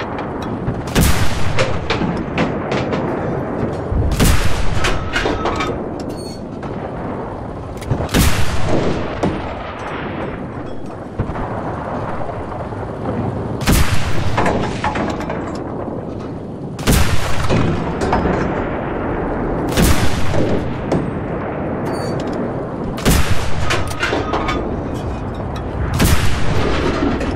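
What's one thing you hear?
A tank cannon fires in loud booming blasts, again and again.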